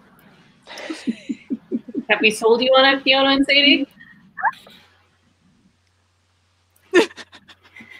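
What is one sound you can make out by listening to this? Several women laugh over an online call.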